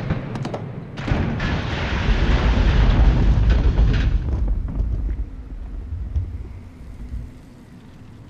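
Lava bubbles and crackles.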